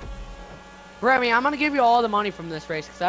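A racing car engine revs up and down loudly.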